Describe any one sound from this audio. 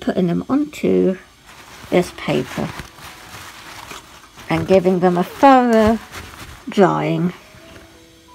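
Paper towels rustle and crinkle close by.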